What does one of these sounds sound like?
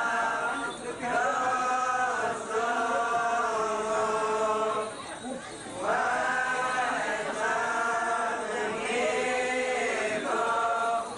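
A choir of men chants a slow, drawn-out hymn in an echoing hall.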